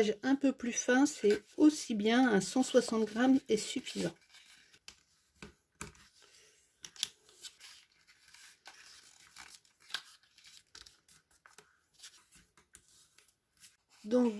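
A bone folder scrapes along card as it is scored.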